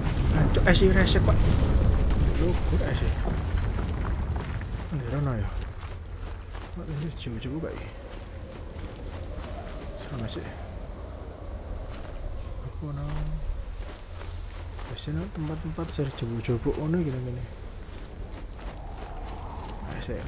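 Footsteps splash and crunch over wet stone.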